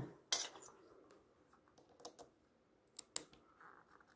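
Metal test probes click against a socket.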